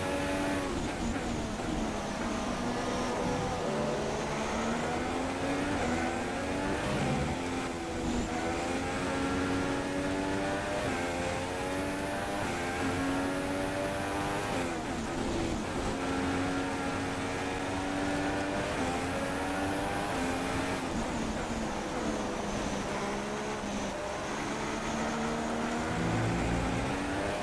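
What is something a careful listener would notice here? Tyres hiss over a wet track.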